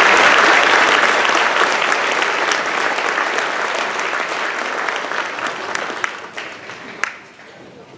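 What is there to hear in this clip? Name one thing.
A large audience applauds in a big echoing hall and the clapping slowly fades.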